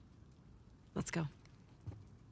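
A young woman speaks softly and playfully, close by.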